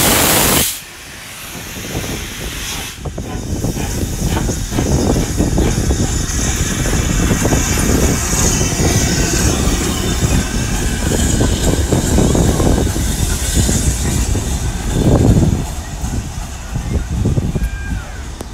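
A steam locomotive rumbles and hisses as it rolls slowly past close by.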